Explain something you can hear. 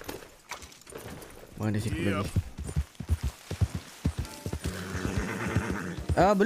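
A horse's hooves thud as it gallops over grass.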